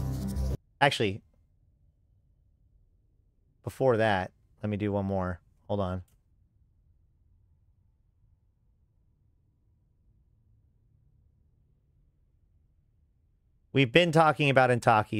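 A man speaks casually into a close microphone, in short bursts with pauses.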